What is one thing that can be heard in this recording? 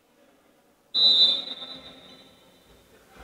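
A referee's whistle blows sharply once in a large echoing hall.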